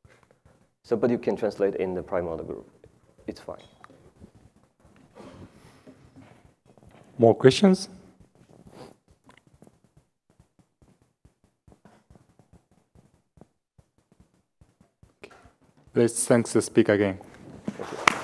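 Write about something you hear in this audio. A man speaks through a microphone, pausing often.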